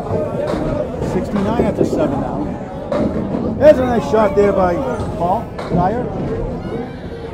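Pins crash and clatter as a bowling ball strikes them.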